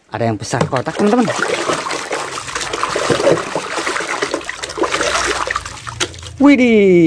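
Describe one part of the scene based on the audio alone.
Water splashes and sloshes in a tub.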